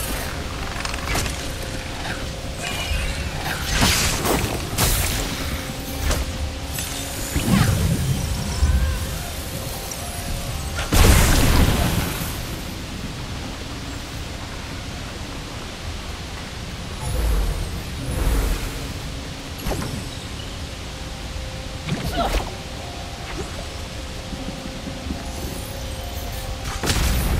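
A bowstring twangs as arrows are shot.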